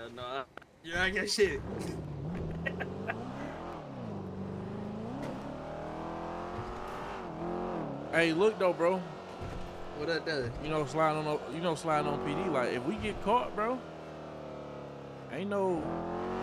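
A car engine hums and revs as it drives.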